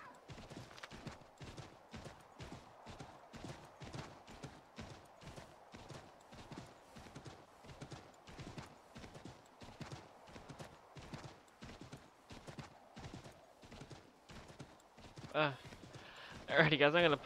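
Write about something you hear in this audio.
A horse gallops, its hooves thudding on snow.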